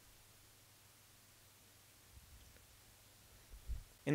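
A cable plug clicks into a port.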